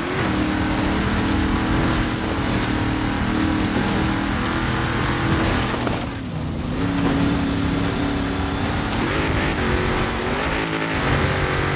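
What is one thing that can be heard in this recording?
Tyres rumble over grass and dirt.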